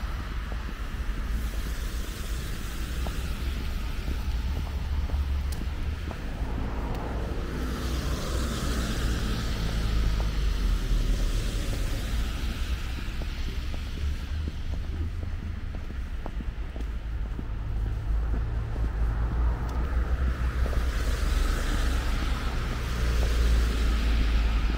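Footsteps crunch and scuff on a snowy pavement.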